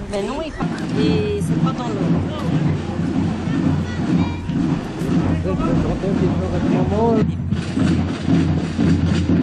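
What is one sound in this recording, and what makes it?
Marching drums beat a steady rhythm outdoors.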